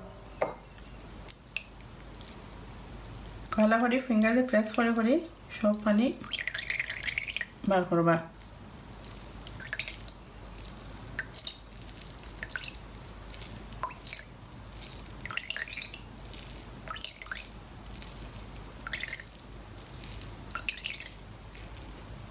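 Wet fish squelches as it is squeezed by hand.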